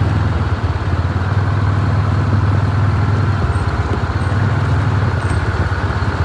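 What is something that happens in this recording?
A bus engine rumbles deeply as the bus drives slowly away.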